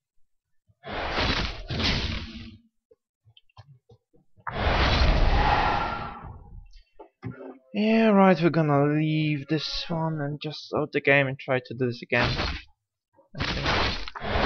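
Magic spells burst with loud whooshing blasts.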